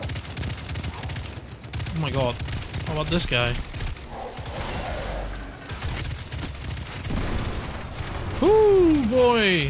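An automatic rifle fires rapid shots.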